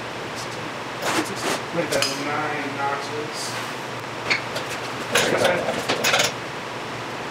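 Metal tools clink and scrape against a motorcycle chain.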